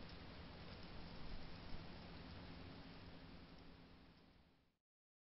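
Wind rustles through tall grass outdoors.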